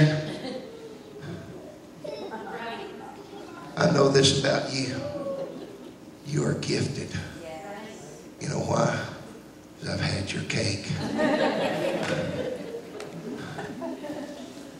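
A middle-aged man preaches with animation through a microphone and loudspeakers in an echoing hall.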